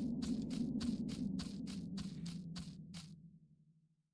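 Footsteps tap at an even pace.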